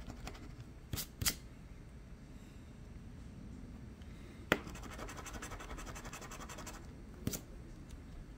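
A coin taps against a card.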